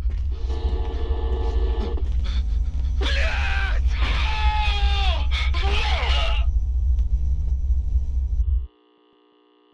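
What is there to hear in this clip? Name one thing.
Loud television static hisses and crackles.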